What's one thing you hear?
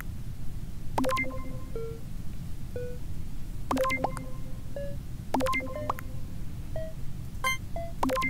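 Short electronic chimes ring out several times.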